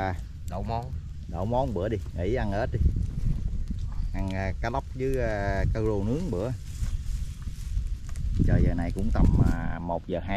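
A small wood fire crackles softly.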